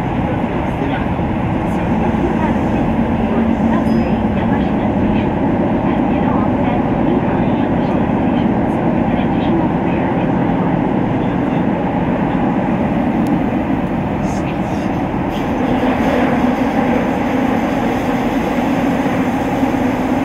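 A train rumbles steadily along through a tunnel.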